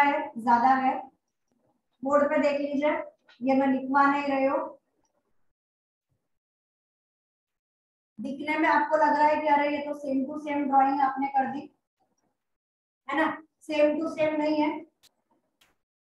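A woman speaks calmly and clearly, close by, explaining in pauses.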